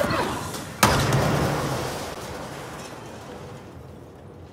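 A loud explosion booms and rumbles away in a large echoing hall.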